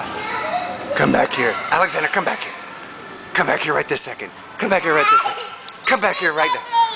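A toddler laughs and squeals with delight close by.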